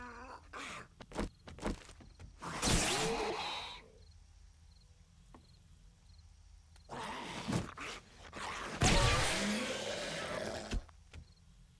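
A zombie growls and snarls.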